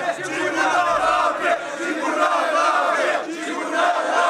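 A crowd of men shouts and cheers loudly.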